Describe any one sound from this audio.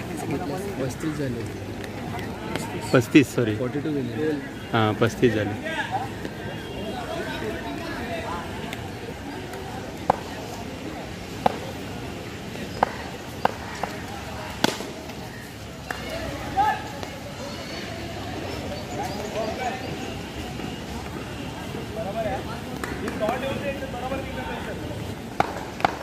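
Young men call out and talk outdoors.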